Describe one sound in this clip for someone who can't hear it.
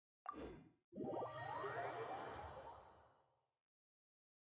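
A bright magical chime swells and fades.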